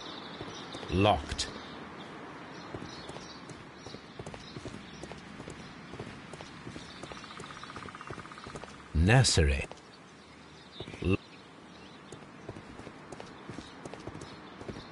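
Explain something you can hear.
Footsteps walk and run on cobblestones.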